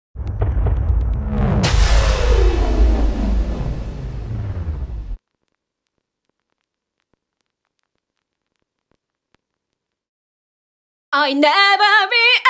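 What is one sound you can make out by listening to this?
An acoustic guitar is played.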